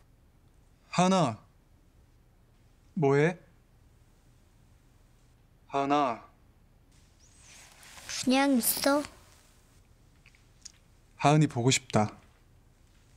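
A young man speaks calmly on a phone.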